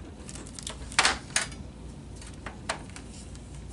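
A light plastic part knocks down onto a wooden table.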